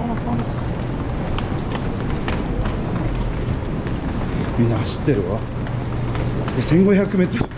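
A crowd murmurs in an echoing underground space.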